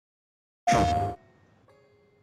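A game console startup chime sounds.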